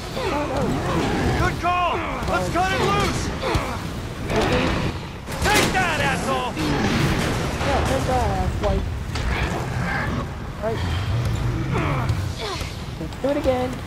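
Flames roar and rumble loudly.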